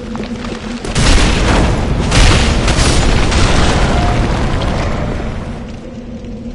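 A sword slashes and strikes with a heavy crash.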